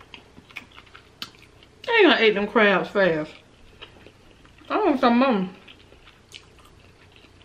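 Food crunches and clicks softly close to a microphone.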